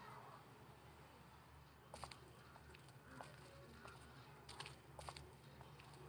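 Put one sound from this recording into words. Footsteps walk over hard ground.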